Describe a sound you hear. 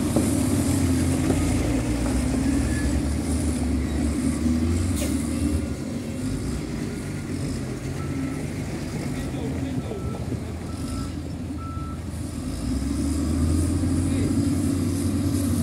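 A wheel loader's engine roars as the loader drives forward.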